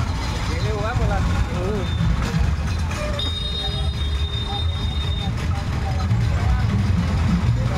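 Motorbikes ride past.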